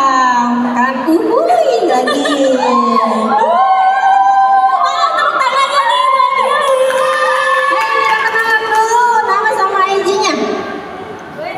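A young man sings loudly through a microphone.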